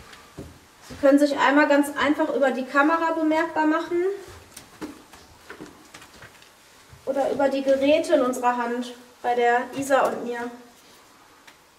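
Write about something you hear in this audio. A woman speaks nearby in a high, animated voice.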